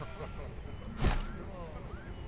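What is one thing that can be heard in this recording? A building drops into place with a short, soft thud.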